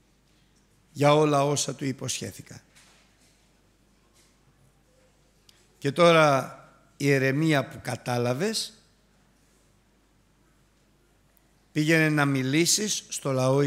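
An older man preaches emphatically into a microphone, with long pauses.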